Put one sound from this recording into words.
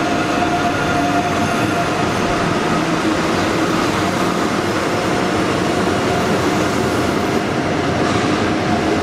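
Large ventilation fans roar steadily.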